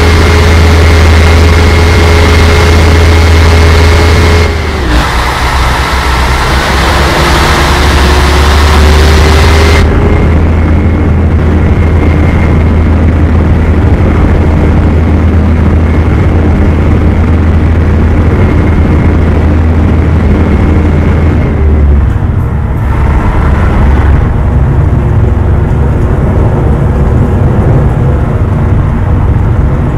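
A large bus engine drones steadily.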